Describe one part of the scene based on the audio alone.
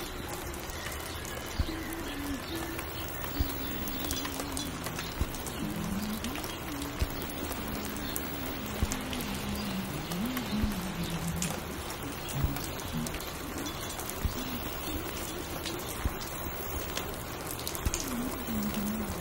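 A vinyl record crackles and pops on a turntable.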